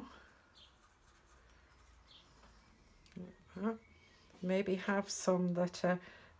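A paintbrush brushes softly on paper.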